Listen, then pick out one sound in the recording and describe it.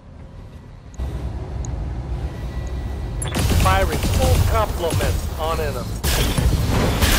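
Heavy guns fire in loud, booming bursts.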